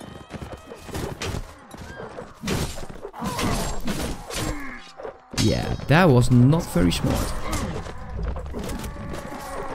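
Steel weapons clash and strike.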